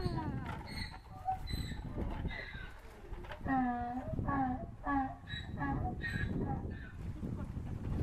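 A woman talks calmly nearby.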